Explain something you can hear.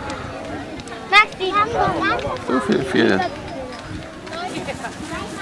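A crowd chatters.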